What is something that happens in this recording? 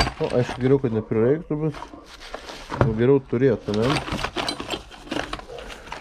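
Metal tools and parts clink and rattle in a box.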